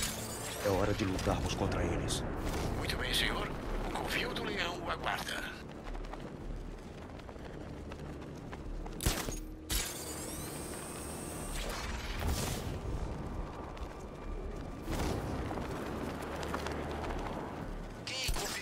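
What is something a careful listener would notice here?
Wind rushes past loudly during a fast glide.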